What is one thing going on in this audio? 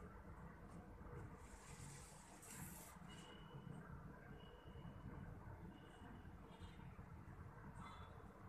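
Cloth rustles softly as it is handled.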